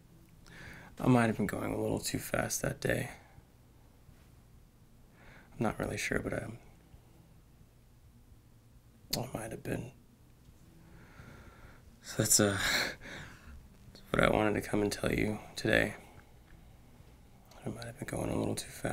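A young man speaks calmly and thoughtfully, close by, with pauses.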